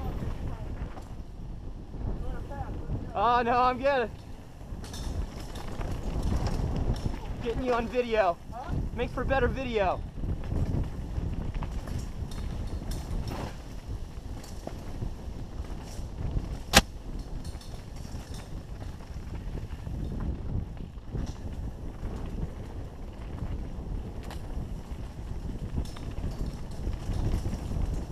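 Bicycle tyres rumble and rattle over a bumpy dirt trail.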